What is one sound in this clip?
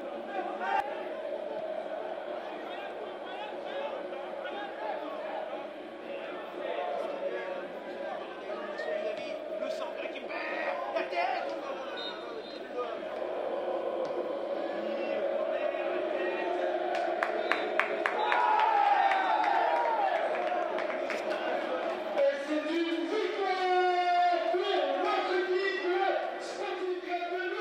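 A crowd of spectators cheers and chatters in an open stadium.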